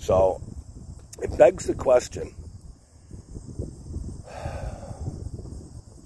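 A man speaks casually, close up.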